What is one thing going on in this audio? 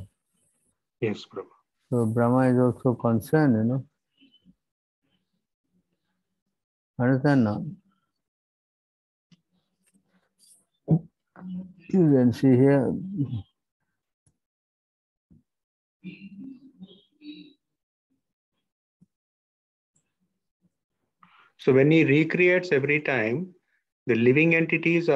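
An elderly man speaks calmly in short phrases through an online call microphone.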